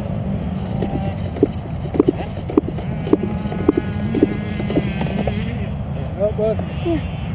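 A dirt bike engine roars steadily up close.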